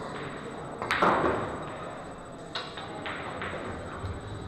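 Pool balls clack against each other and roll.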